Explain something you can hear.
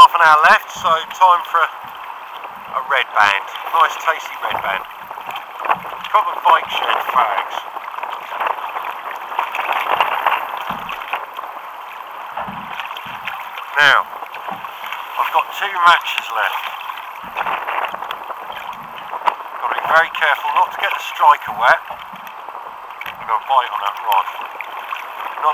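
Choppy water splashes against a boat.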